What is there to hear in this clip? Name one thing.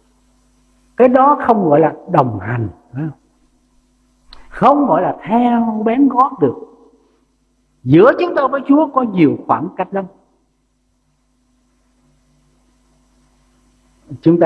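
An elderly man speaks with emphasis through a microphone, in short phrases with pauses.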